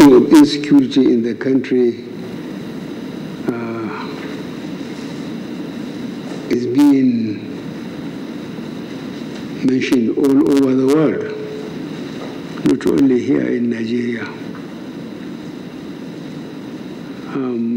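An elderly man speaks slowly and firmly into a microphone, with long pauses.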